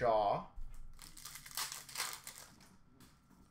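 Trading card packs rustle and crinkle as hands sort through them.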